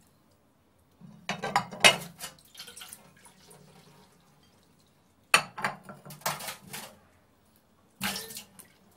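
Dishes clatter and clink in a sink.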